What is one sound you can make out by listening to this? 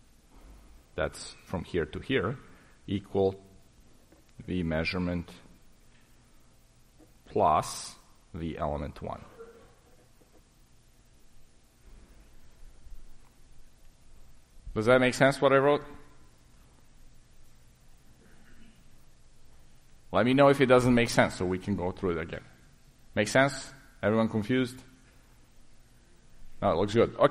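A man speaks in short bursts through a microphone in a large room.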